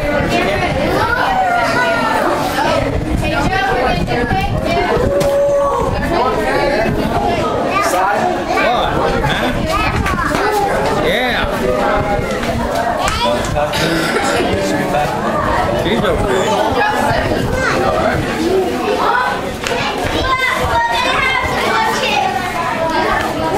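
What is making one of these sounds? A group of men, women and children sing together close by, outdoors.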